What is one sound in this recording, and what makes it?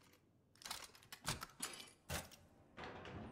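A padlock snaps open with a metal clunk.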